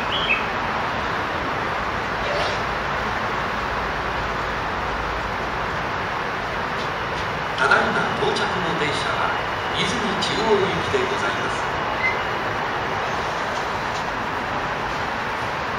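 A train rolls into a station, rumbling steadily.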